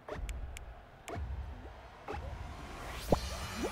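A game countdown chimes once per second.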